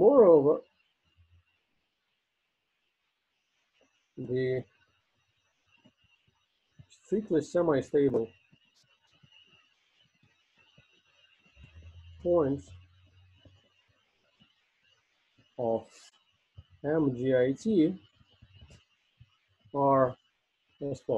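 A man speaks slowly and calmly over an online call, pausing often.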